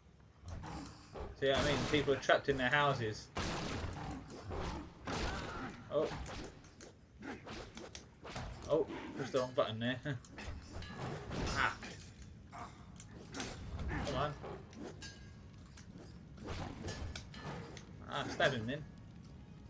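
Swords clash and strike repeatedly.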